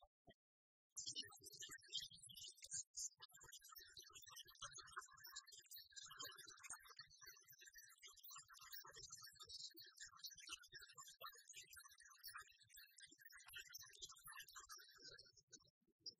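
Upbeat electronic game music plays with jingling chimes.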